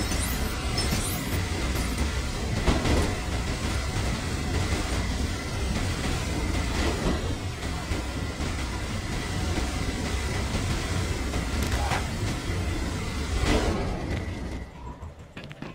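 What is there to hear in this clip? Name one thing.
A heat beam hisses and crackles steadily.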